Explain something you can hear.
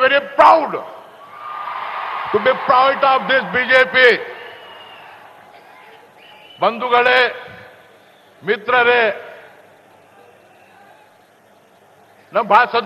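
A crowd of men shouts slogans loudly outdoors.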